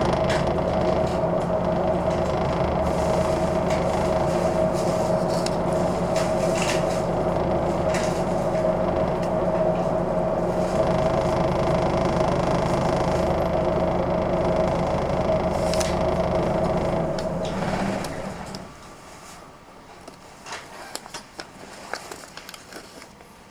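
Cars drive past on a street.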